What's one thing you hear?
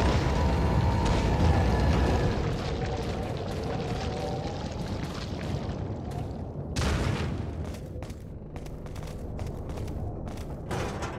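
Footsteps thud on wooden boards and dirt.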